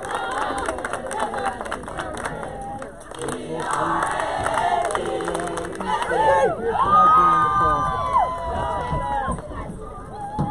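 A group of young women chant and cheer together outdoors.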